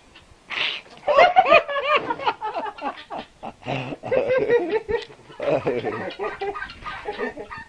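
Chickens cluck and squawk loudly.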